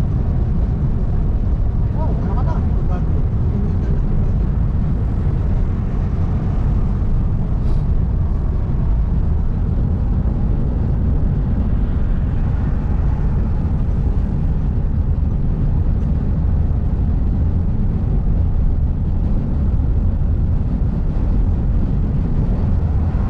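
A car's engine hums steadily with a low road rumble from inside the cabin.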